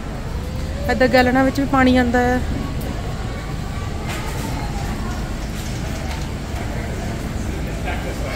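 A shopping cart rolls over a hard floor.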